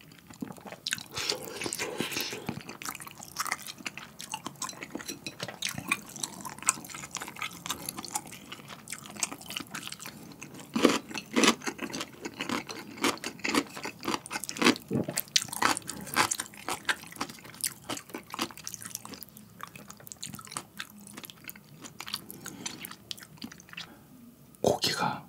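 A young man chews food close to a microphone with wet smacking sounds.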